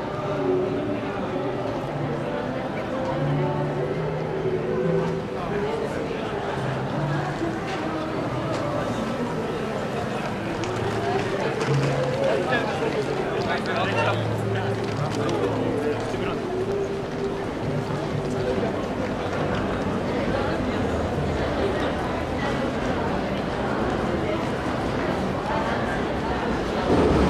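A crowd of men and women chatter nearby on a busy street.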